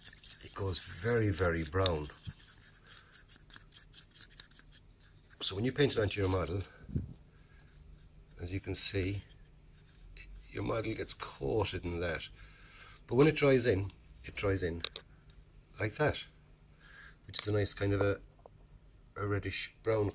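A brush stirs and scrapes inside a small plastic pot.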